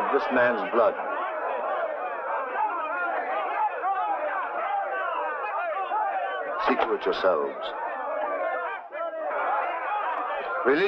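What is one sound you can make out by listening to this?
A man speaks in a loud, commanding voice.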